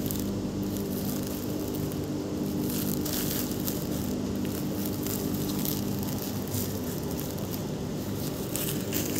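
Woven plastic sacks rustle and crinkle as they are handled.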